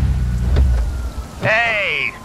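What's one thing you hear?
A car engine rumbles and cuts off.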